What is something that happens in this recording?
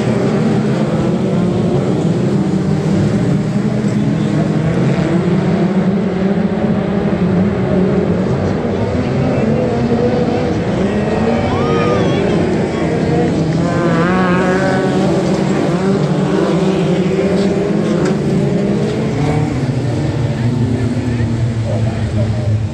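Racing car engines roar and rumble loudly around a dirt track, outdoors.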